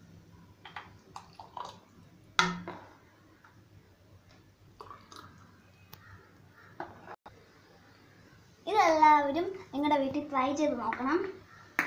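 Thick liquid pours from a ladle into a glass.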